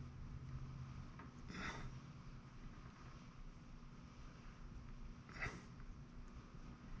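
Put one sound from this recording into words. A sculpting tool scrapes into soft modelling clay.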